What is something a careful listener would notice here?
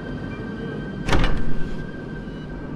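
A door swings open with a sharp knock.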